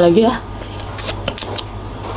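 A woman slurps noodles.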